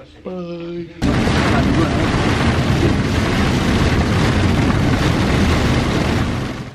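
Heavy rain drums on a car's windscreen.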